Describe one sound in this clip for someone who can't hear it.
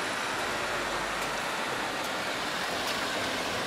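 A truck drives past close by.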